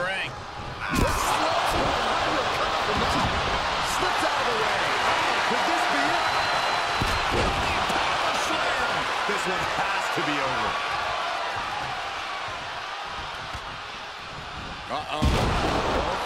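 A heavy body slams onto a wrestling ring with a loud thud.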